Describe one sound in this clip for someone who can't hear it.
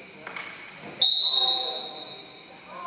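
A referee blows a sharp whistle in a gym.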